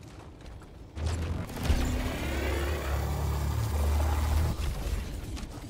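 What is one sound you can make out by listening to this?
A heavy gun fires with a deep, booming rumble.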